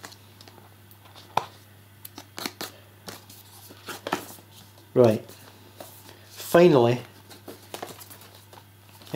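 A cardboard box rustles and taps as it is handled close by.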